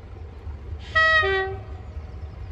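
A train whistle sounds briefly in the distance.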